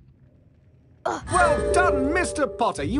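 A bright, twinkling fanfare plays.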